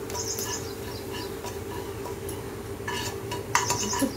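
A spoon scrapes and stirs in a metal pan.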